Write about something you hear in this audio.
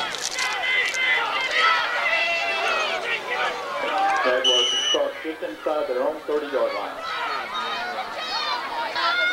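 Spectators nearby shout and cheer outdoors.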